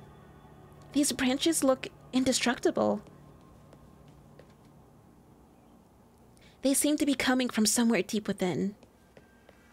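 A young woman reads aloud with animation, close to a microphone.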